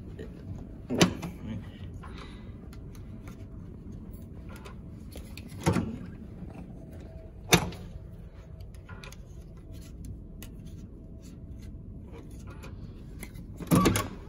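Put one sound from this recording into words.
An electronic door lock clicks sharply several times.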